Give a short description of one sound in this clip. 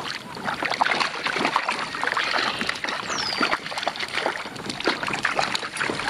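A fish splashes in the water beside a boat.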